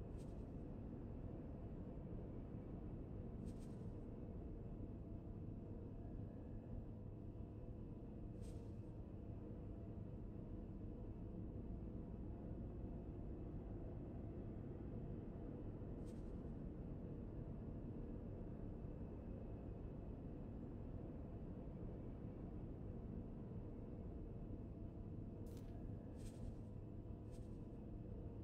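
Soft electronic menu clicks sound now and then.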